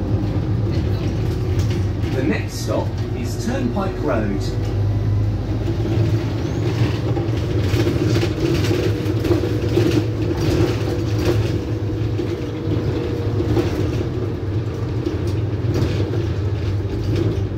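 The bus rattles and creaks as it drives.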